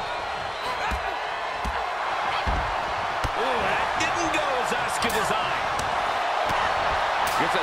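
Punches and kicks land with sharp smacks.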